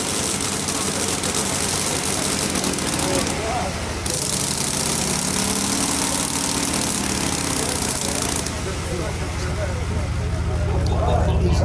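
A small engine runs fast with a steady rapid chugging.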